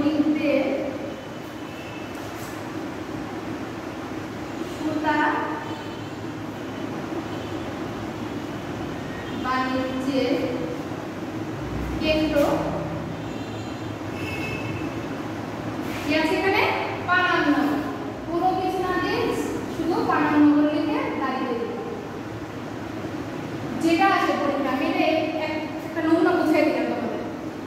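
A woman speaks calmly, explaining.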